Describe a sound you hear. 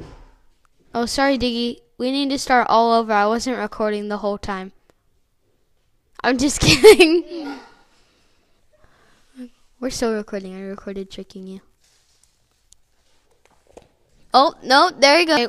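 A young boy talks close by with animation, in short bursts.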